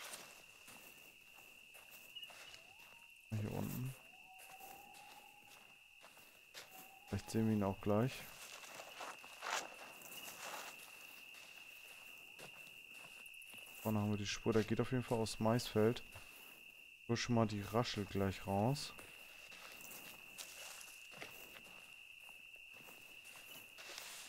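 Footsteps rustle through leaves and undergrowth.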